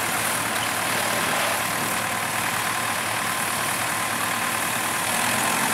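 Tractor engines rumble and chug steadily nearby.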